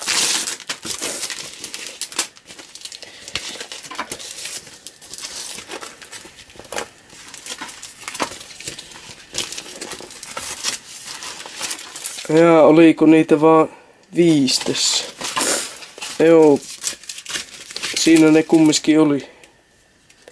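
Glossy sticker sheets rustle and flap as they are handled.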